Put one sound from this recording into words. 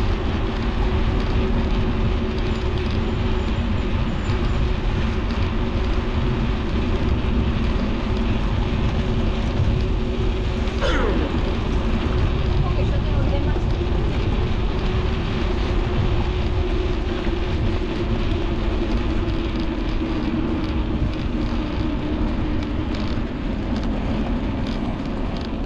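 Wind rumbles and buffets against the microphone while riding outdoors.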